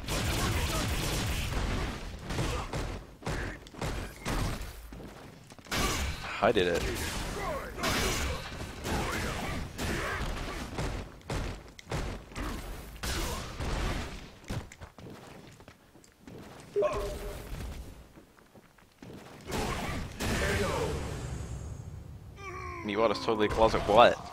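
A man grunts and shouts with each attack.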